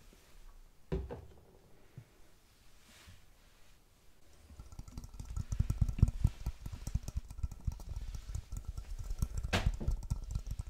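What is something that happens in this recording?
A bowl knocks against a sink.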